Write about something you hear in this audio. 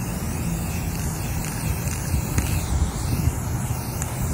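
A spray can hisses in steady bursts.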